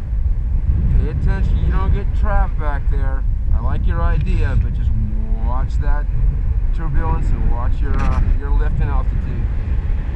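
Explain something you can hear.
A man talks close by, over the wind.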